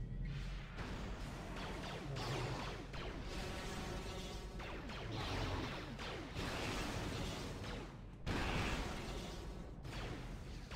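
Electric lightning crackles and buzzes.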